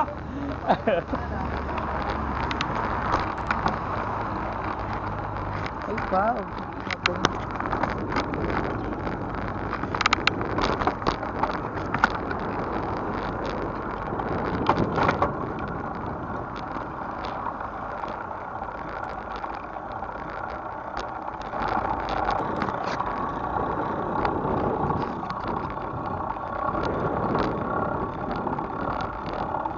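Wind rushes past a bicycle moving outdoors.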